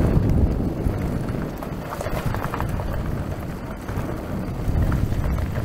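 Tyres rumble and crunch over a bumpy dirt trail.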